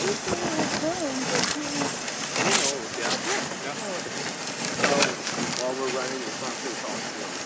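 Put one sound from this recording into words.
Sled runners hiss steadily over snow.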